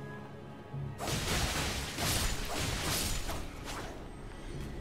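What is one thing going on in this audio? A sword slashes and strikes an enemy with loud impacts.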